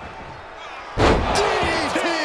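A body slams hard onto a wrestling ring.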